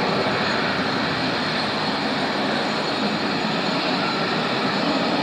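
A jet engine roars steadily in the distance.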